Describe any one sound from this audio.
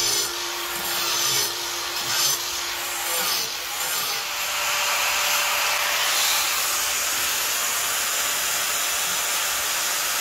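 An angle grinder whines loudly as it cuts into stone.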